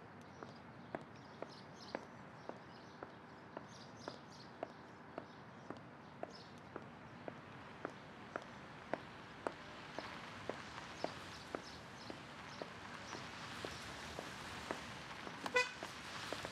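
High heels click steadily on pavement.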